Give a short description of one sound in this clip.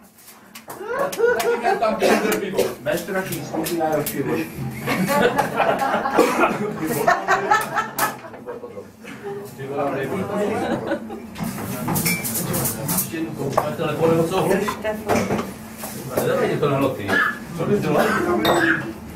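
A crowd of men and women chatters and laughs.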